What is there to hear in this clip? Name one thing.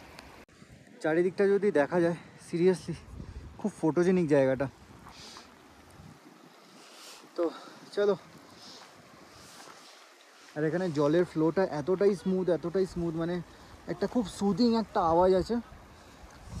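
A man talks with animation close to the microphone, pausing often.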